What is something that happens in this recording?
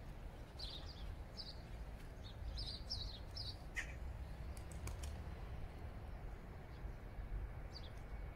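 A bird chirps in short, high calls.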